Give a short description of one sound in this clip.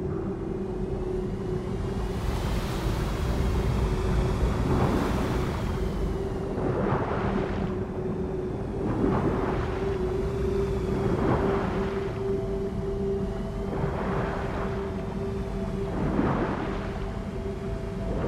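A low underwater rumble hums steadily.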